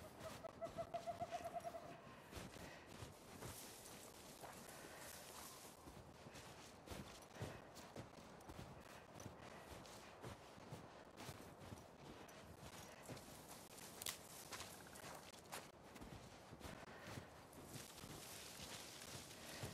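Footsteps crunch on snow and brush through dry grass.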